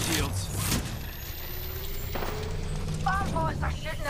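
A device hums and whirs as it charges up.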